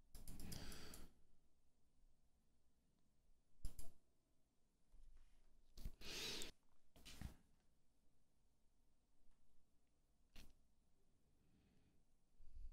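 A man talks quietly into a close microphone.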